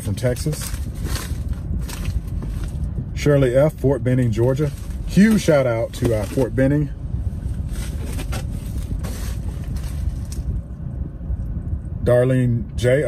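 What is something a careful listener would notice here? A plastic mailer crinkles in a man's hands.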